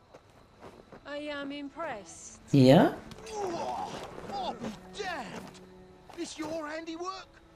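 A man speaks in a low, surprised voice.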